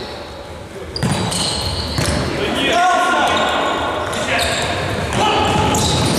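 A ball is kicked with a hard thud in an echoing hall.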